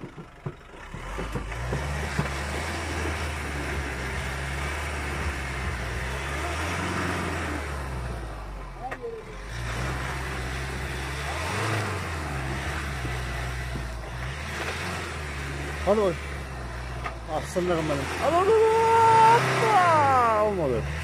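A truck engine revs hard as the truck strains through mud.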